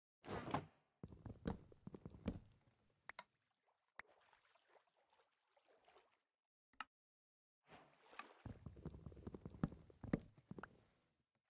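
Water splashes nearby.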